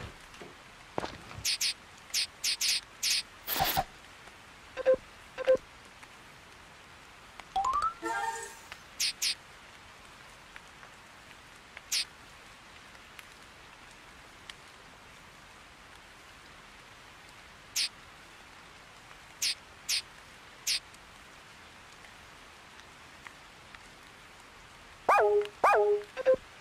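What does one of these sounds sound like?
Short electronic menu blips and chimes sound now and then.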